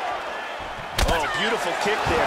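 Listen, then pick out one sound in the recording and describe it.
A kick lands with a heavy thud.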